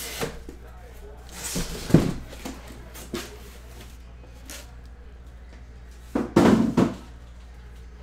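A cardboard box scrapes and thumps on a table.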